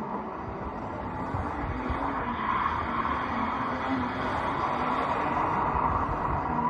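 Tyres squeal on wet tarmac.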